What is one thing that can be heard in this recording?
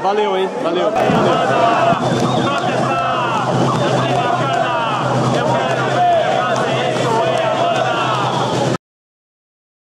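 A crowd chants and shouts loudly in an echoing hall.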